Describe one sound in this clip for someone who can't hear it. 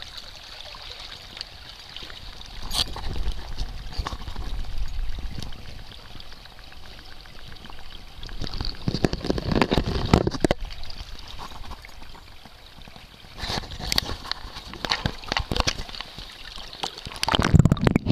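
Water splashes and sloshes as a fish is handled.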